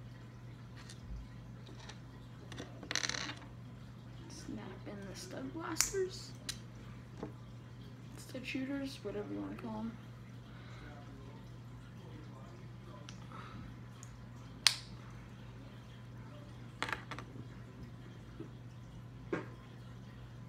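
Plastic toy bricks click and tap together.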